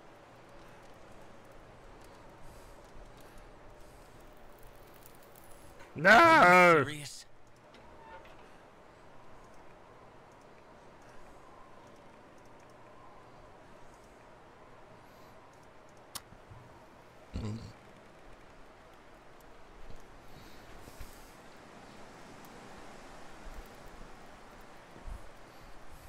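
A fire crackles softly inside a stove.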